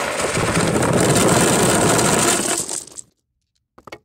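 Dice clatter onto a table.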